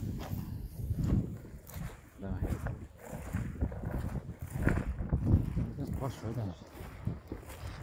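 Footsteps rustle and swish through tall grass.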